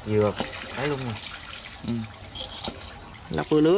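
Water pours steadily from a tap.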